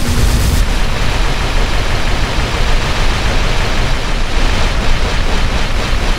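Debris rattles and clatters down after a blast.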